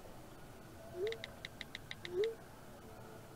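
A smartphone plays short message chimes.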